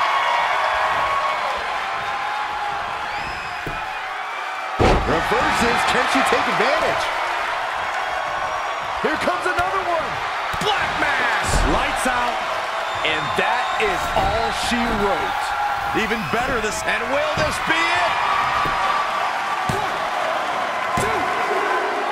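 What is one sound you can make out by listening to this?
A large indoor crowd cheers and murmurs.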